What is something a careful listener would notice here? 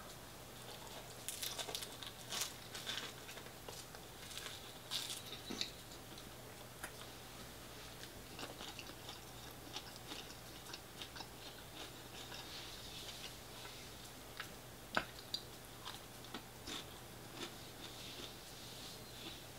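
A man chews and smacks his lips while eating.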